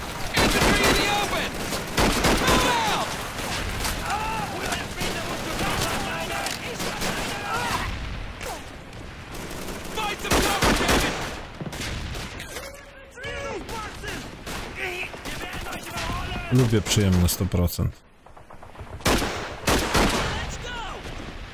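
Gunshots bang in bursts.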